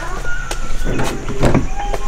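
A car's central locking clicks.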